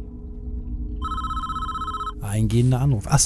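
A game plays a steady electronic chime.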